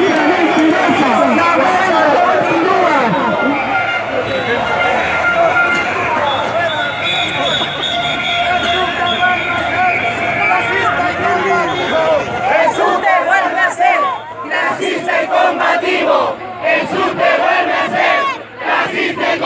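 A large crowd of men and women chants and shouts loudly outdoors.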